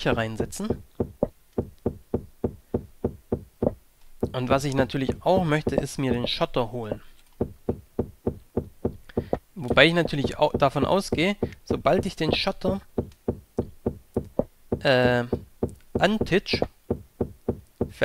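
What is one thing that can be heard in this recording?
A pickaxe taps rapidly and steadily at stone.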